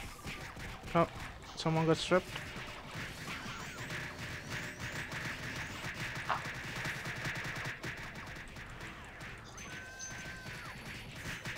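Game spell effects crackle and chime rapidly.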